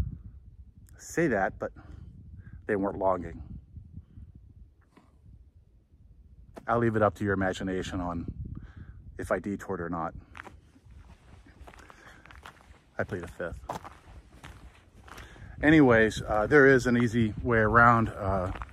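An older man talks calmly and close by.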